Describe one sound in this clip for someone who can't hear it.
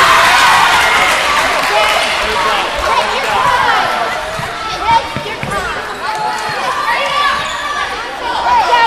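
A crowd of spectators chatters and cheers in a large echoing gym.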